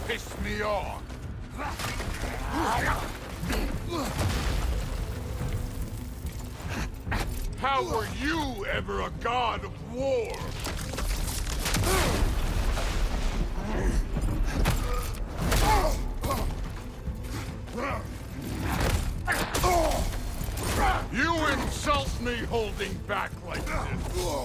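A man grunts and shouts with effort.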